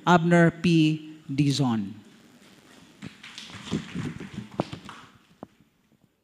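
A man speaks through a microphone in an echoing hall.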